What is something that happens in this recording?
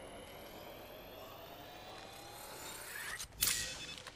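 A medical kit whirs and hums as it is used.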